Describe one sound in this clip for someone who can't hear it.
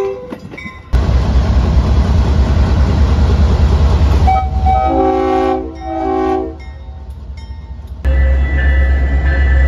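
A diesel locomotive engine rumbles deeply close by.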